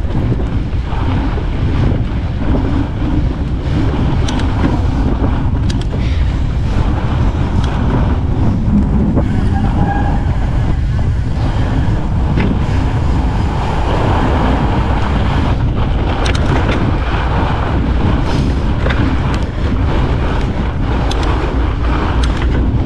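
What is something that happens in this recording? Wind rumbles steadily against the rider outdoors.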